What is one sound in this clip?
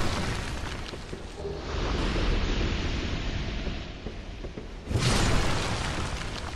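A sword whooshes through the air.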